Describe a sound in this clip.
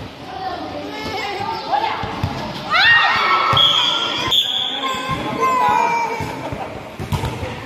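Young women shout and cheer excitedly.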